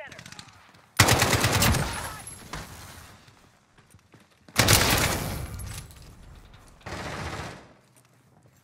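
A rifle fires in loud, rapid bursts.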